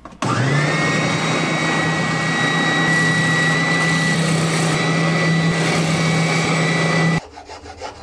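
A sanding drum grinds against wood.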